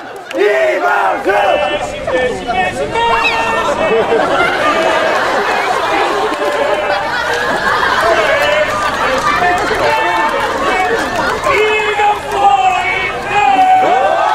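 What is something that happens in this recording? A man sings loudly.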